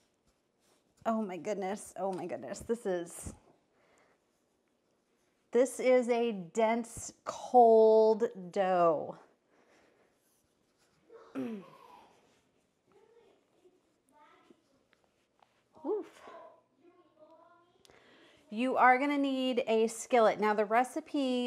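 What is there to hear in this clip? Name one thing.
A woman talks calmly into a clip-on microphone, close by.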